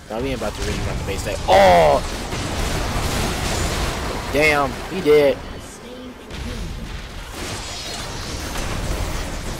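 Video game fight effects clash and whoosh.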